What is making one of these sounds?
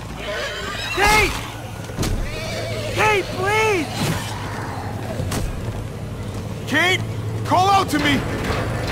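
A young man calls out in short, rising and falling cries.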